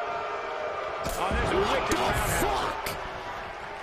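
A heavy blow lands with a thud on a wrestler's body.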